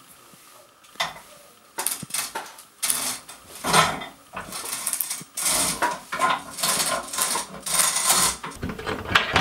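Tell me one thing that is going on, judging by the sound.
A man taps a metal funnel with his fingers.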